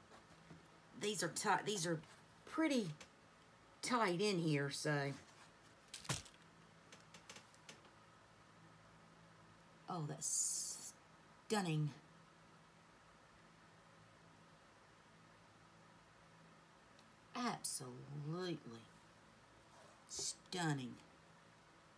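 A woman talks calmly and close by, in short bursts.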